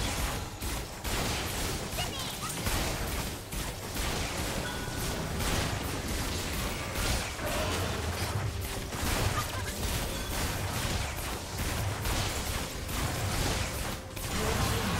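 Spell effects whoosh and burst in a fast fight.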